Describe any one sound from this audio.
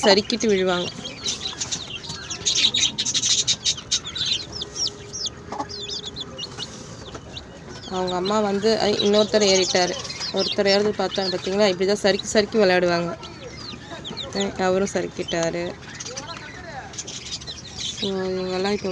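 Chicks peep and cheep rapidly, close by.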